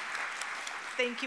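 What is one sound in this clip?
A woman speaks into a microphone.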